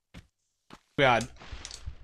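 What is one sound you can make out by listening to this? A man talks close to a microphone.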